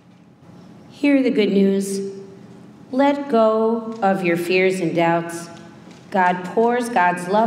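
A middle-aged woman speaks slowly and expressively into a microphone, as if singing or preaching, in an echoing hall.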